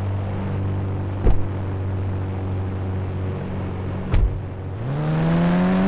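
An engine idles with a low hum.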